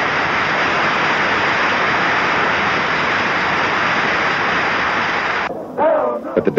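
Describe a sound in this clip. A large crowd applauds in a big hall.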